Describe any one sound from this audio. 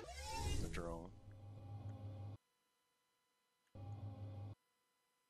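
A spaceship engine whooshes and then hums low, cutting out and back in.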